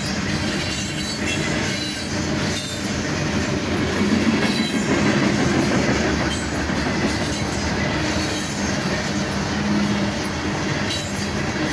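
Freight cars rumble and clatter past close by on the rails.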